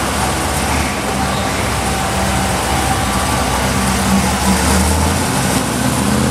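A vintage car engine rumbles loudly as it drives past close by.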